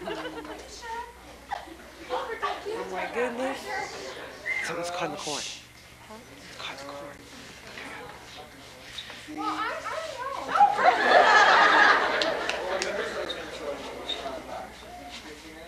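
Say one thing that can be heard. A young man talks and laughs nearby.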